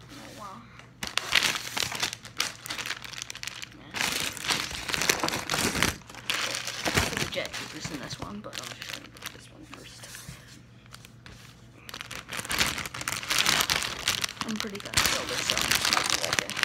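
Plastic wrapping crinkles and rustles loudly up close.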